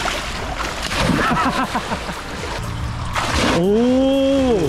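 Water splashes as a person jumps into a pool.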